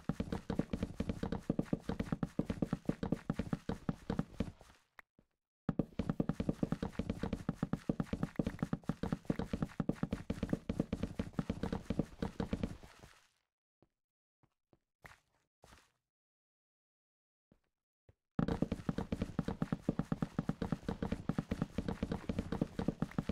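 Blocks break with rapid, crunching pops, pausing now and then.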